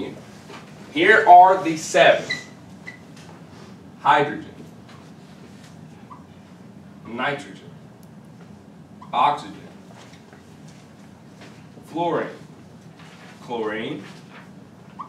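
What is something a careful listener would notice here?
A man speaks in short, calm phrases.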